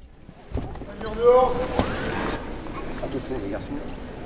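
A man talks quickly up close.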